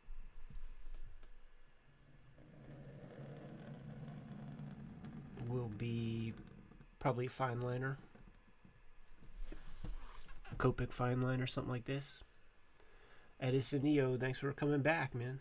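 A dip pen scratches on paper.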